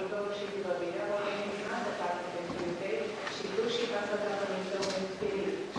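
An elderly woman speaks up from a distance.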